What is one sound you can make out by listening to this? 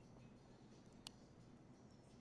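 A single soft click sounds as a phone menu is tapped.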